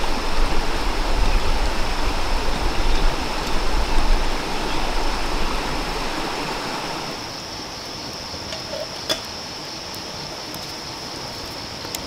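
A shallow stream babbles over stones.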